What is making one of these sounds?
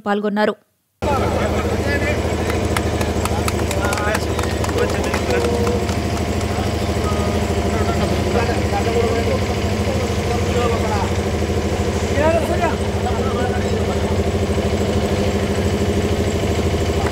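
A crowd of men chatter and call out outdoors.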